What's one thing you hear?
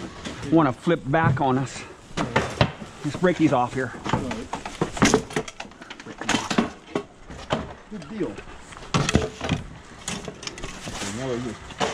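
Wooden furniture knocks and scrapes on the pavement as it is handled.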